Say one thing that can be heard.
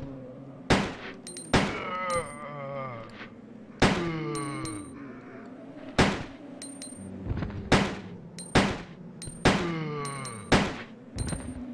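Gunshots from a handgun ring out one after another, each echoing briefly.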